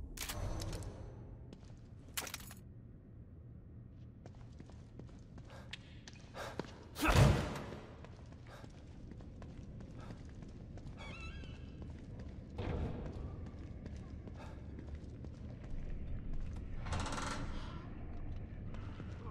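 Footsteps thud and scrape on a hard floor.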